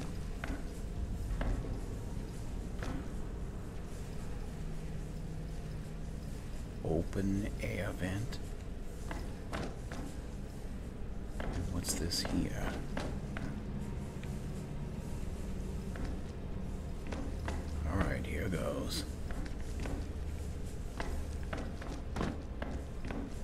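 Footsteps scuff slowly on a stone floor.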